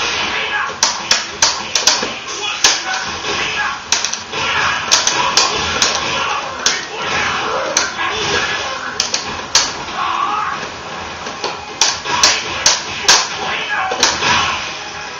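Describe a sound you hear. Punches and kicks land with sharp, smacking hits in quick bursts.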